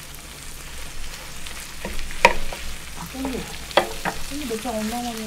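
Wooden spatulas clack and scrape against a hot griddle.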